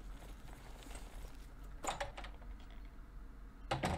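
A heavy wooden door opens with a thud.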